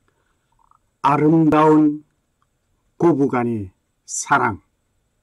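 An elderly man sings slowly, drawing out each phrase.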